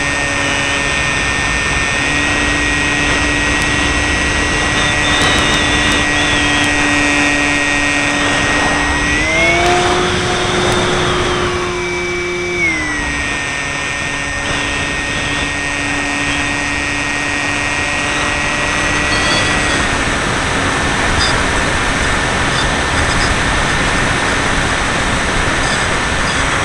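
Wind rushes past the plane.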